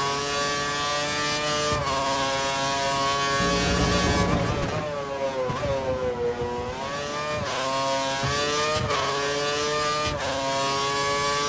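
A racing car engine screams at high revs, dropping in pitch through a corner and climbing again with quick gear changes.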